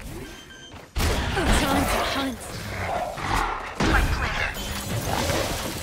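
A crackling burst of energy whooshes up close.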